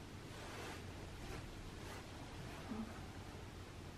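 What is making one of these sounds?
Clothing rustles softly as a woman moves.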